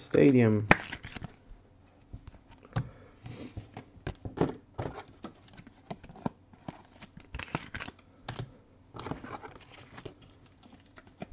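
Cards rustle and tap as a hand handles them.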